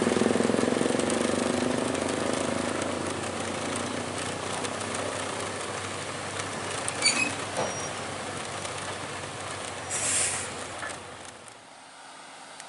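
A heavy truck engine rumbles close by as the truck drives slowly.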